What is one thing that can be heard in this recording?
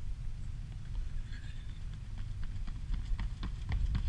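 Footsteps patter on pavement as runners come close.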